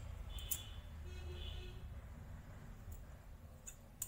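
Scissors snip through thin plastic.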